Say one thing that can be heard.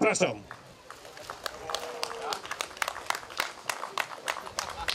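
A small group of people claps their hands.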